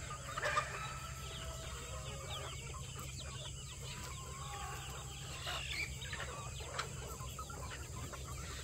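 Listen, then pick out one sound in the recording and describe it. A flock of chickens clucks and chirps outdoors.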